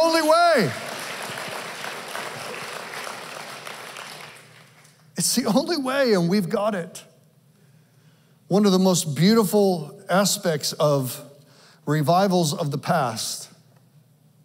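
A man speaks with animation through a microphone in a large hall.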